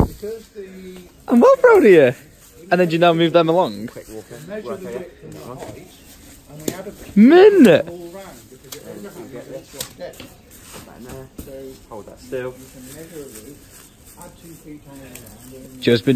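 Dry straw rustles and crackles as hands pull and press bundles of it.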